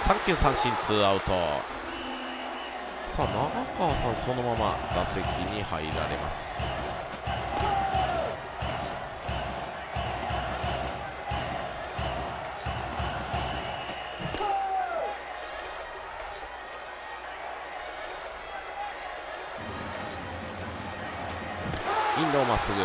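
A stadium crowd cheers and chants steadily.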